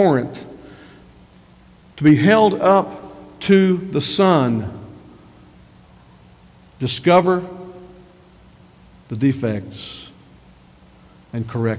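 A middle-aged man preaches with animation through a microphone, in bursts with pauses.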